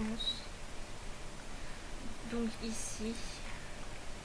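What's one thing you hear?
A young woman speaks briefly and casually into a close microphone.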